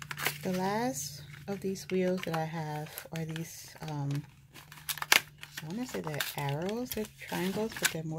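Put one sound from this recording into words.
A plastic packet crinkles and rustles between fingers.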